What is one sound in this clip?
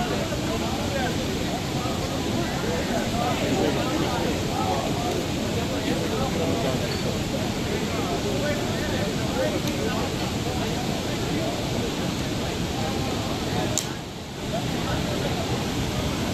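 A crowd of people chatters in the distance outdoors.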